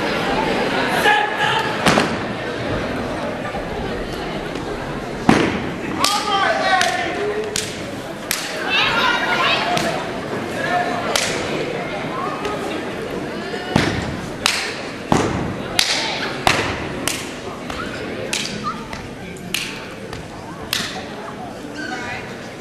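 Performers stomp and clap in sharp beats.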